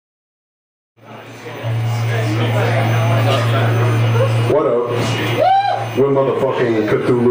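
A metal band plays loud, distorted music live.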